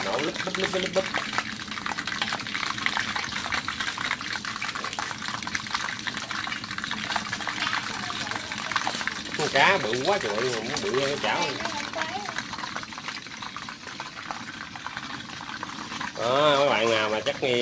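Fish sizzles and crackles as it fries in hot oil.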